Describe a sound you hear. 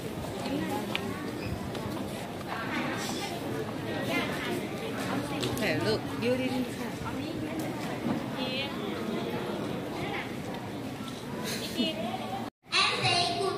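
Young children chatter and call out.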